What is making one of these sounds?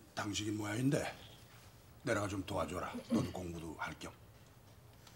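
A middle-aged man speaks calmly and firmly nearby.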